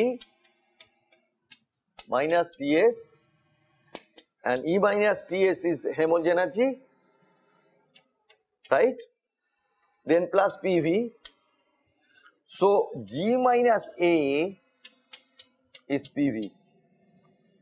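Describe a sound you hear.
A man speaks calmly and steadily, as if lecturing, close by.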